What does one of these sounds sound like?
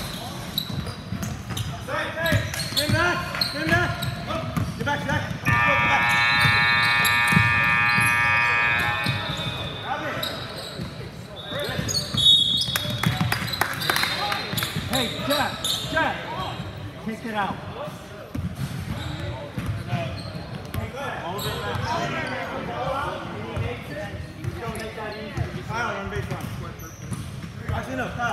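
A crowd of spectators murmurs in a large echoing gym.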